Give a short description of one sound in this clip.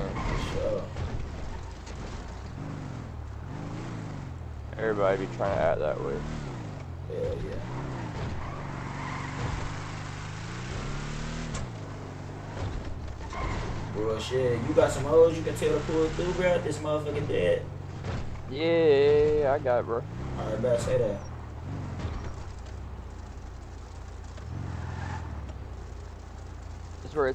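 A car engine hums and revs.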